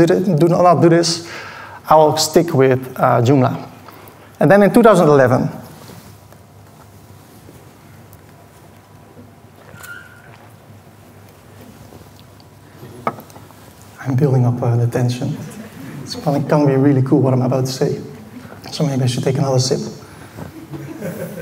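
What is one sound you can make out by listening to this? A man speaks through a loudspeaker in a large echoing hall, pausing now and then.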